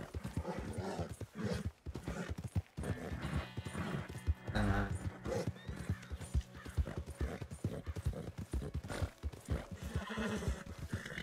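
A horse gallops, its hooves thudding quickly on soft ground.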